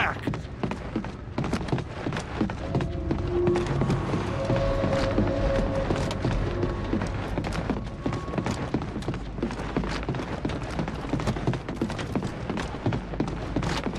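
Heavy boots clank steadily on a metal floor.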